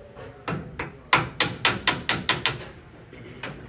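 A metal tool knocks rapidly and repeatedly against a car door frame.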